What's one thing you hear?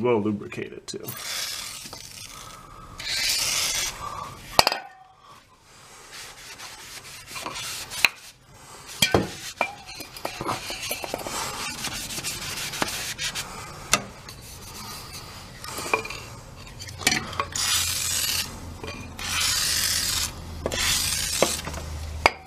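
Spray hisses from an aerosol can in short bursts.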